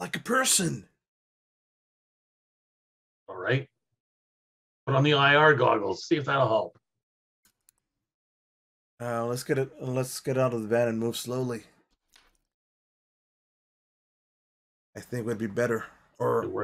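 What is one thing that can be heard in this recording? Several men talk with animation over an online call, with pauses between turns.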